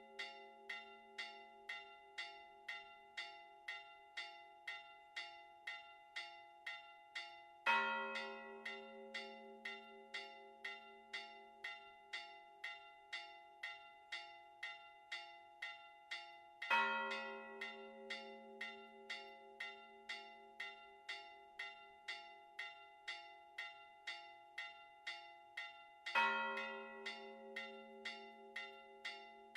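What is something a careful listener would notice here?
Church bells ring in a quick, steady peal outdoors.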